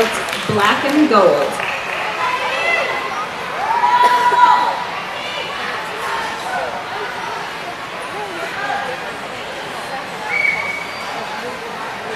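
Young girls shout a cheer together in a large, echoing hall.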